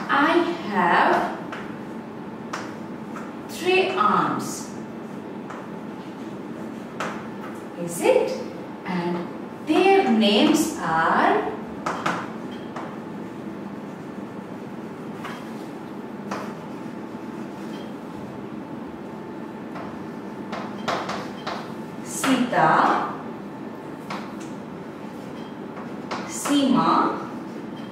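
A young woman speaks calmly and clearly, in short phrases, close to a microphone.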